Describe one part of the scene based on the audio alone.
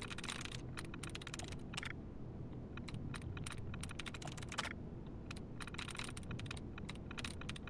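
A computer terminal ticks with rapid, short clicks.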